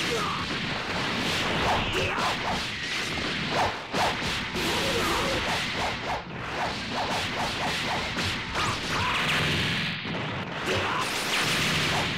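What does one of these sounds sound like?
Energy blasts whoosh and crackle loudly.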